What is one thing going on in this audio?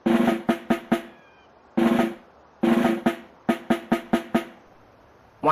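Drumsticks tap out quick, rhythmic bursts of knocks.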